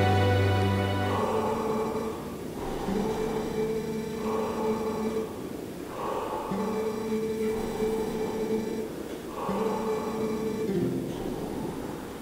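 Video game music plays in steady held notes.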